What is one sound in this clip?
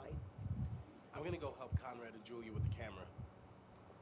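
A young man answers calmly.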